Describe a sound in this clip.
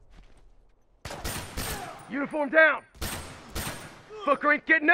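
Gunshots ring out in bursts, close by.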